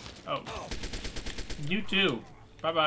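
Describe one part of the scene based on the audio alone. An automatic rifle fires a rapid burst of shots.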